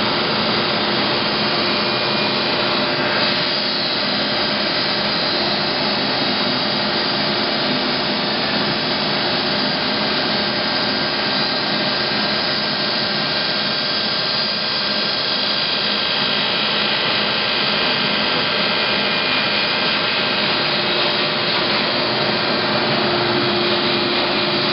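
Machinery hums and whirs steadily nearby.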